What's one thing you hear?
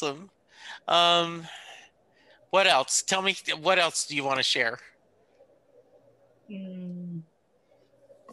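A man sings up close with held notes.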